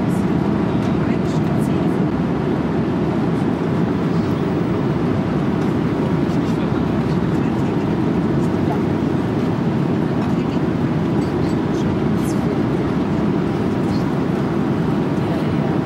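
A steady low roar of jet engines fills an aircraft cabin in flight.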